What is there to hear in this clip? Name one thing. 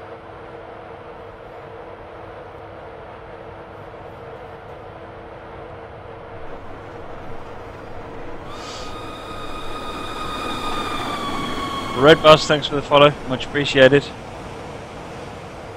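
A train engine hums steadily while rolling along.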